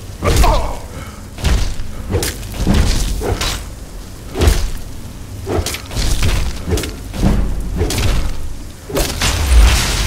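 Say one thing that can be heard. A heavy axe strikes an ice creature again and again with loud crunching blows.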